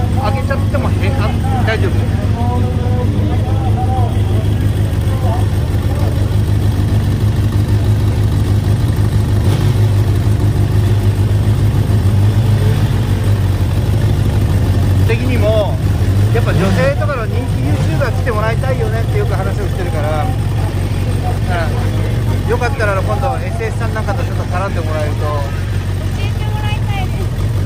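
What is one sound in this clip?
Men talk nearby over the engine noise.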